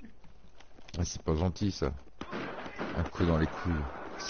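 Gunshots fire in quick bursts close by.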